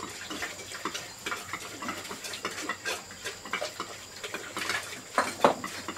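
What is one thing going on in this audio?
A trowel scrapes wet mortar in a bucket.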